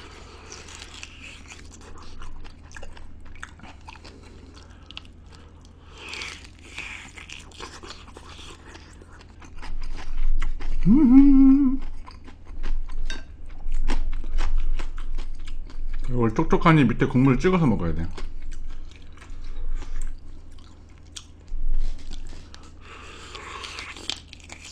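A young man chews food wetly, close to a microphone.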